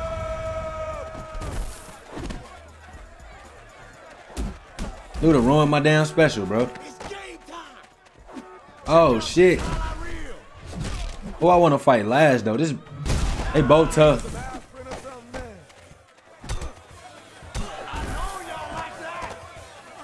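Punches thud and smack.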